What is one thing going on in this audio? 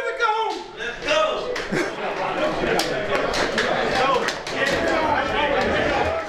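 A crowd of men cheer and chatter in an echoing room.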